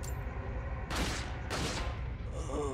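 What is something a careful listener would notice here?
Gunshots ring out with a short echo.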